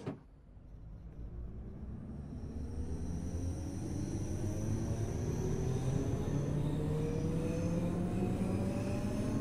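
An electric train's motors whine, rising in pitch as the train picks up speed.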